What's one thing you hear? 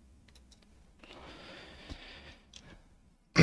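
Plastic parts click and rustle as hands fit them together.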